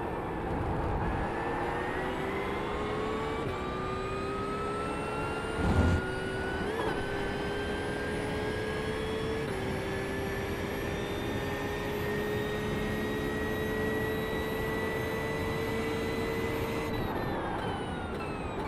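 A racing car engine roars steadily, climbing in pitch through the gears and dropping at each gear change.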